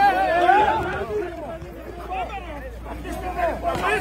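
People scuffle and shove.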